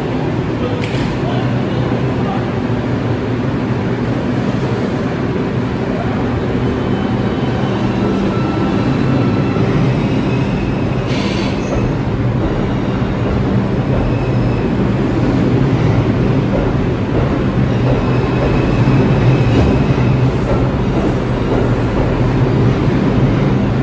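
A subway train rumbles loudly as it pulls along the platform, echoing in the station.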